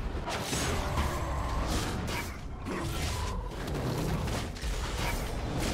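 Game characters clash with magic blasts and hits in a fight.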